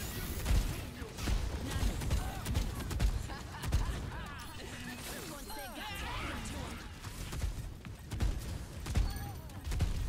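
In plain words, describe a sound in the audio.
Swords clash and slash in quick strikes.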